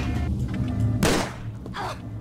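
A gunshot cracks loudly.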